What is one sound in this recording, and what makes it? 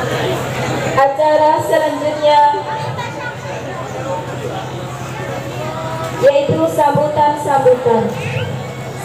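A man speaks over a loudspeaker outdoors, with pauses.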